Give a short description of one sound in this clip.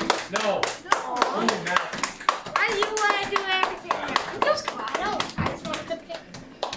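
Children clap their hands in rhythm.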